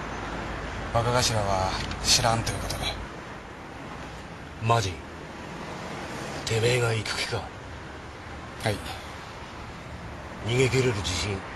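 A man speaks in short, tense phrases close by.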